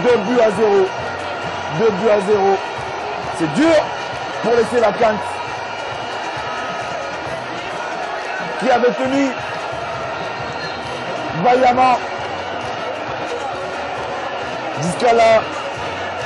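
A large stadium crowd murmurs and chants steadily in the open air.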